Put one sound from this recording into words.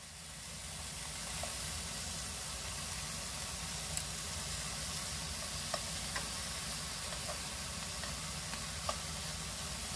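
Metal tongs click against a frying pan.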